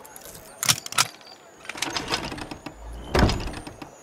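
A chest lid creaks open.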